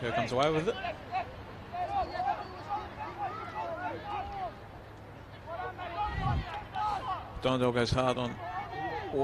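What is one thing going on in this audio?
Young men shout and call to each other across an open field outdoors.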